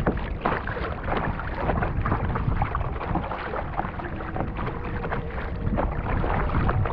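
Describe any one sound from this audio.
Water gurgles and rushes along a kayak's hull.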